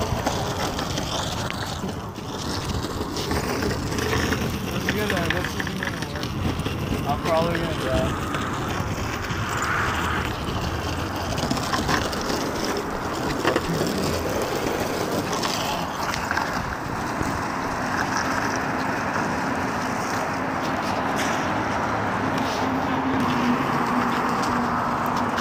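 Wind buffets the microphone outdoors.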